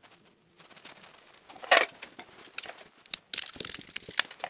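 A wire stripper clicks as it cuts.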